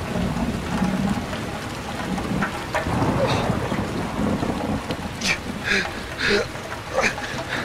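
A fire crackles and burns.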